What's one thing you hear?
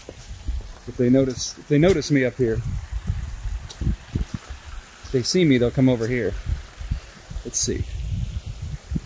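A small waterfall splashes steadily into a pond.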